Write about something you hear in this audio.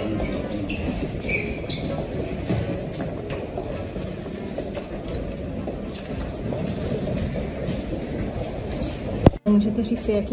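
Footsteps patter along an echoing corridor.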